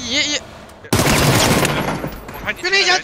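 A rifle fires a loud burst of shots.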